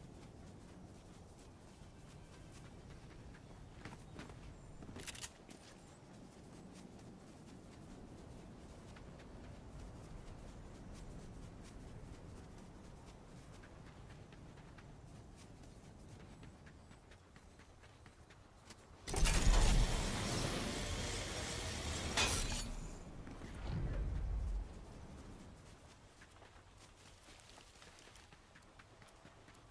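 A game character's footsteps patter over grass.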